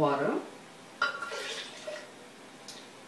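Liquid pours into a glass blender jug.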